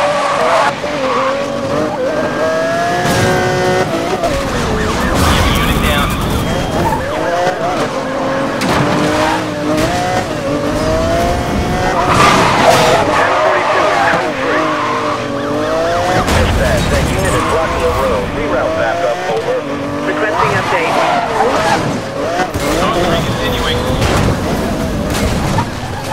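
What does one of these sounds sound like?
A sports car engine roars and revs up and down at high speed.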